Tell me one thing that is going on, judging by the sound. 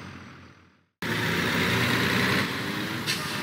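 A truck engine rumbles loudly as the truck drives close past.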